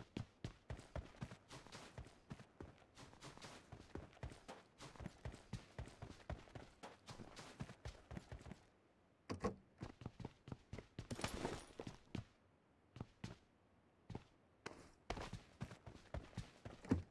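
Quick footsteps thud on the ground.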